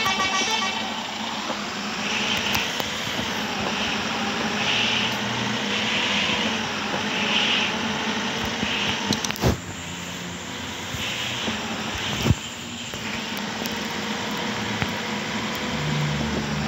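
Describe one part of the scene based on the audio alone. Tyres roll on asphalt with a steady rushing noise.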